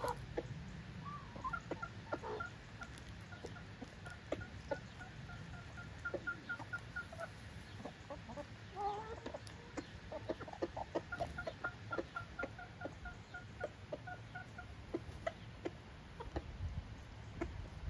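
Chickens peck grain from dry ground.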